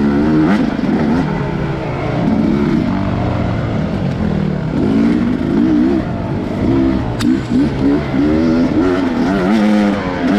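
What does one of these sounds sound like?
A dirt bike engine revs up and down, loud and close.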